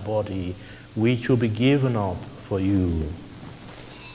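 A man chants in a deep voice through a microphone in a large echoing hall.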